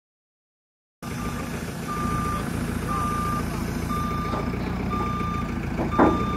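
An engine rumbles steadily close by.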